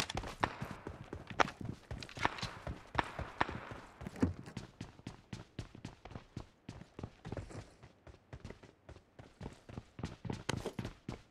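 Footsteps thud quickly across the ground and wooden floors.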